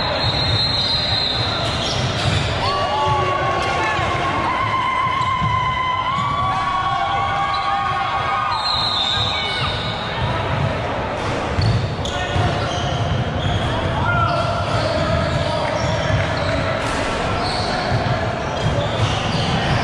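Young men and onlookers chatter and call out in the background.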